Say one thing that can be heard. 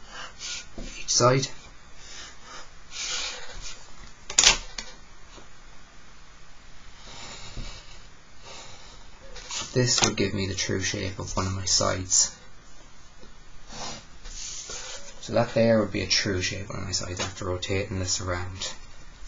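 A pencil scratches across paper.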